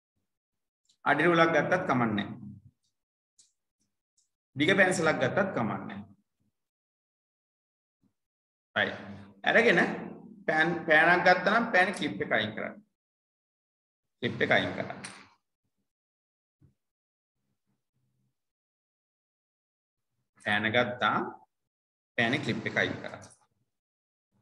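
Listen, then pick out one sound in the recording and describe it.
A man speaks calmly in bursts over an online call.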